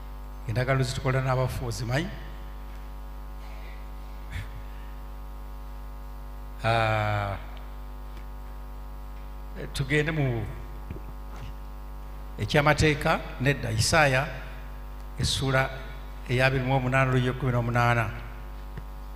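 A man speaks slowly through a microphone in short phrases, with long pauses.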